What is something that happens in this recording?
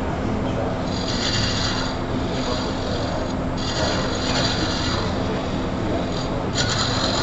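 A wood lathe hums steadily as it spins.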